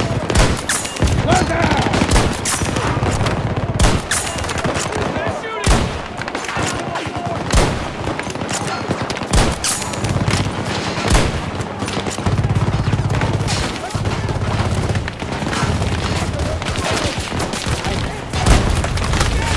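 Sharp rifle shots crack out one at a time, with a short echo after each.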